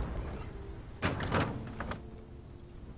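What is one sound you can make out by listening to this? A heavy wooden door swings open with a knock.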